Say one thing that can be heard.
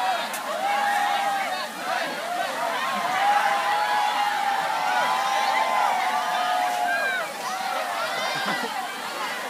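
A large crowd shouts and screams excitedly across the water, heard from a distance.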